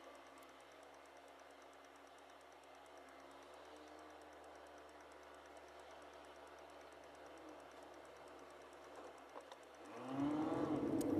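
A car engine idles quietly inside the car.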